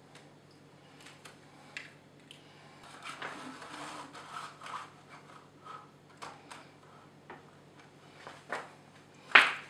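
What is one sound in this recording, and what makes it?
Hands handle and rustle a plastic sheet.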